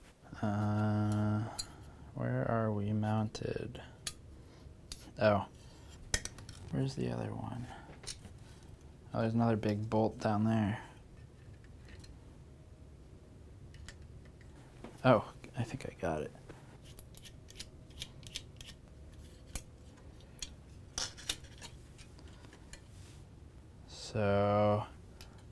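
Metal parts click and clink as a man handles them.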